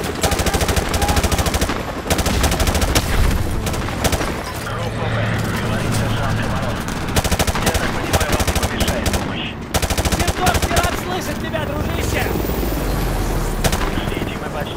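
An automatic rifle fires rapid bursts at close range.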